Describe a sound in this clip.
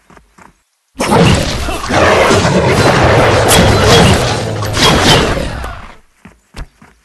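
Loud battle noise of clashing blows and roaring creatures fills the air.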